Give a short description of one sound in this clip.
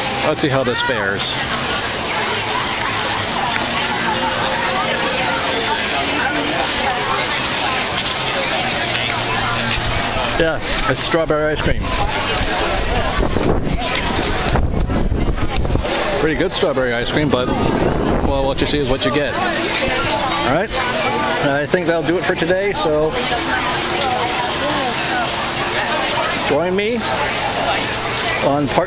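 A crowd of adults chatters all around outdoors.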